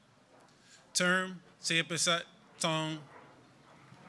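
A young man speaks into a microphone over a loudspeaker.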